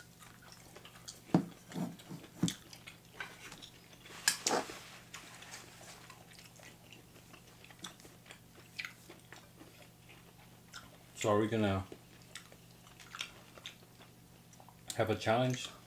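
A man slurps noodles and chews loudly up close.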